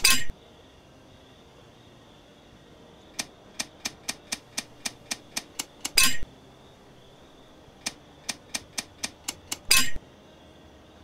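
A safe lock gives a loud clunk as a number catches.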